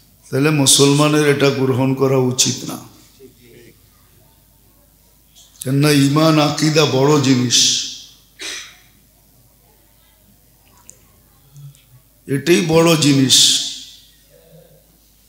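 A middle-aged man chants and preaches in long, melodic phrases through a microphone, pausing between them.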